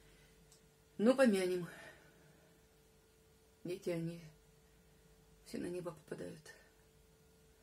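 A middle-aged woman speaks calmly in short phrases, close by.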